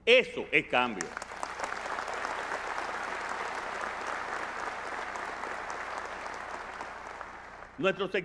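A large audience applauds.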